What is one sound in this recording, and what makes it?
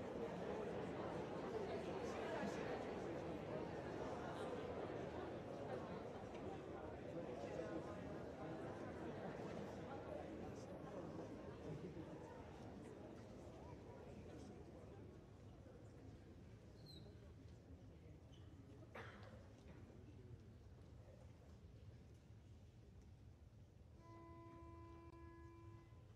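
A large choir sings in an echoing hall.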